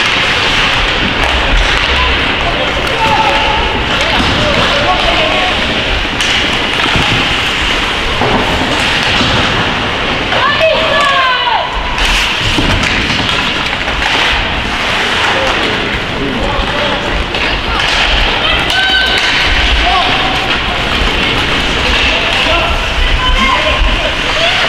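Ice hockey skates scrape and carve across the ice in an echoing arena.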